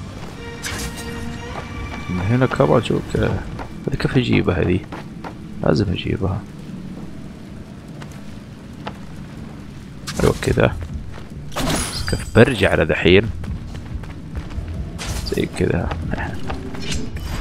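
Swords swish and clang in quick bursts of fighting.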